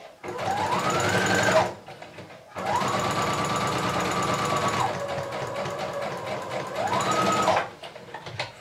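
A sewing machine whirs rapidly, speeding up and slowing down.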